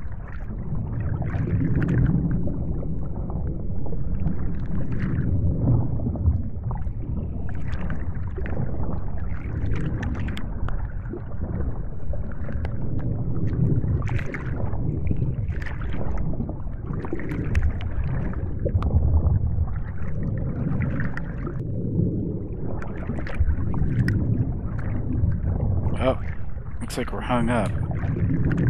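Underwater thrusters whir steadily.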